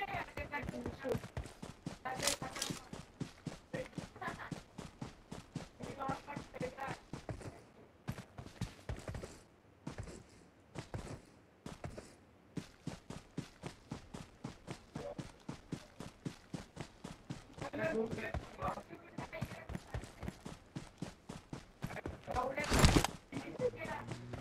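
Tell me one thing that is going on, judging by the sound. Footsteps run quickly and steadily through grass.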